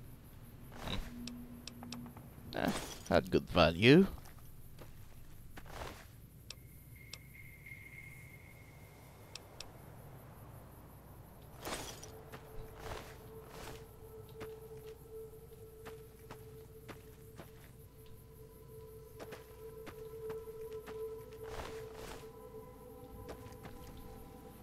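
Short clicks sound now and then.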